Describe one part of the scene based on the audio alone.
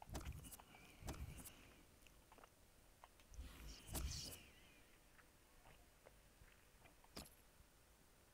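Short menu clicks and whooshes sound as the menus change.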